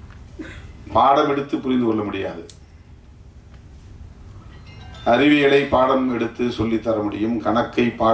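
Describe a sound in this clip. An older man speaks slowly into a microphone, heard through loudspeakers.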